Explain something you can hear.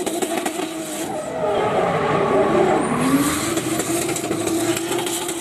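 Tyres screech and squeal on asphalt.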